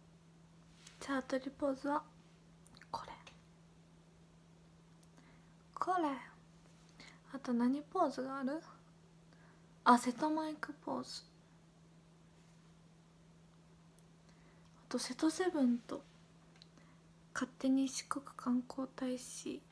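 A young woman speaks softly and casually into a nearby microphone, in short bursts with pauses.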